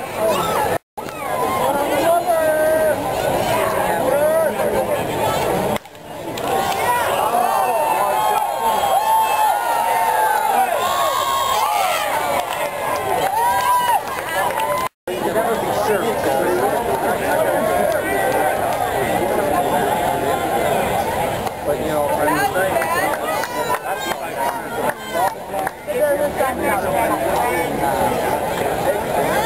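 A large crowd of spectators chatters and calls out outdoors.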